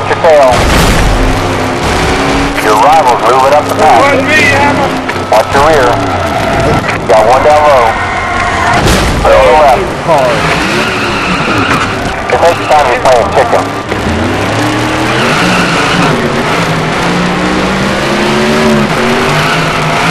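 A race car engine roars steadily at high speed.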